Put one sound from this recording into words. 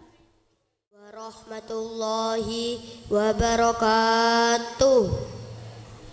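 A young boy chants a melodic recitation through a microphone and loudspeaker.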